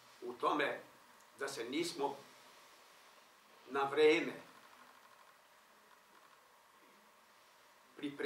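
An elderly man speaks calmly in short phrases, with pauses.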